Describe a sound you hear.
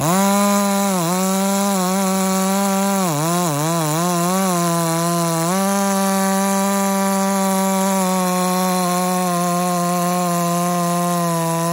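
A gas chainsaw cuts through a thick log under load, its engine pitch dipping as it bogs.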